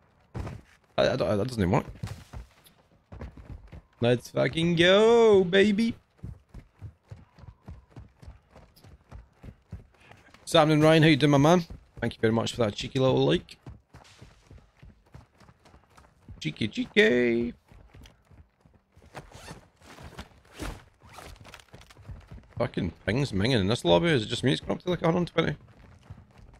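A man talks with animation into a close microphone, in bursts.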